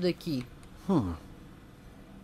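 A young man exclaims briefly into a close microphone.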